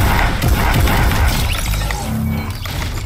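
A gun fires in a video game.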